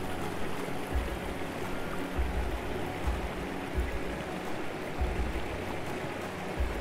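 A mountain stream rushes and splashes over rocks.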